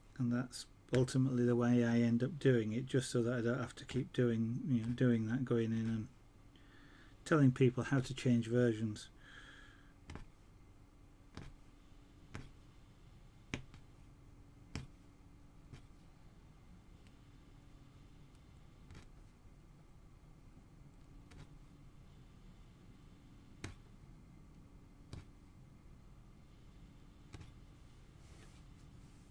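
A punch needle taps and pokes through taut fabric.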